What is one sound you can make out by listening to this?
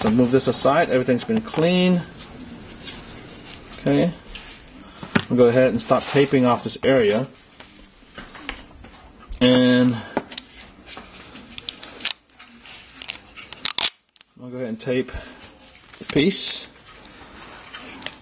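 Small phone parts click and tap lightly on a table.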